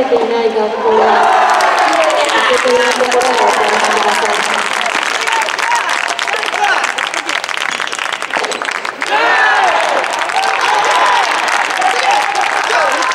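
A crowd of young spectators cheers and shouts.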